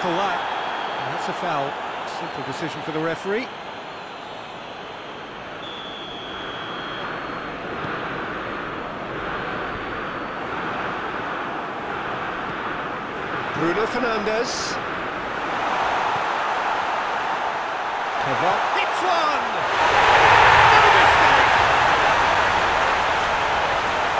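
A large stadium crowd cheers steadily and swells into a loud roar.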